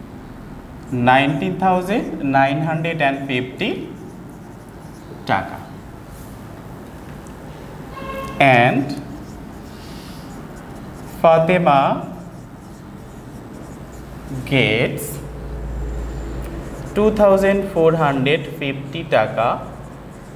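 A man speaks calmly nearby, with pauses.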